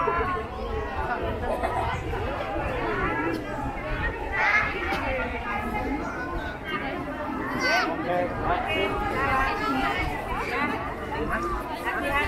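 A crowd of men, women and children chatters outdoors throughout.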